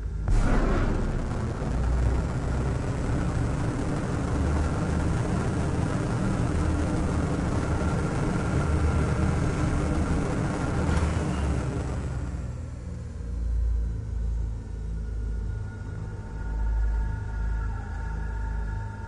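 A spacecraft engine hums with a deep, steady rumble.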